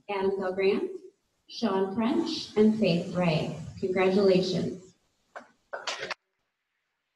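A woman speaks calmly into a microphone over a loudspeaker in an echoing hall.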